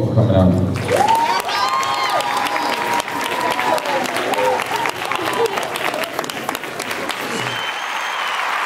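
An audience cheers and applauds in a large hall.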